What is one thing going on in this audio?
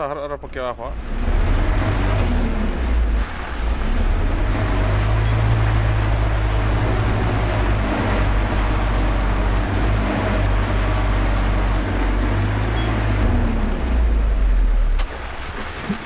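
A truck engine rumbles loudly and steadily.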